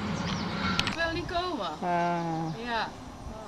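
A middle-aged woman speaks nearby.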